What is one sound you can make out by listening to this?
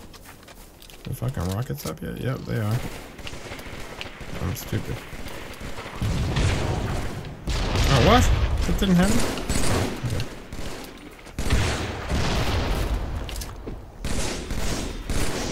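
A man talks with animation into a nearby microphone.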